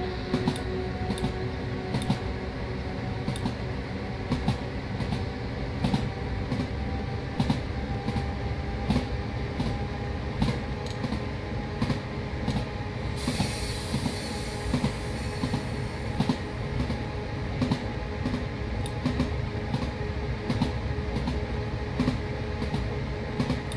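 Train wheels click rhythmically over rail joints.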